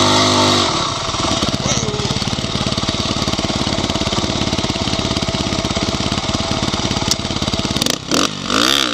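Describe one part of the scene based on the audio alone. A dirt bike engine idles with a steady rumble close by.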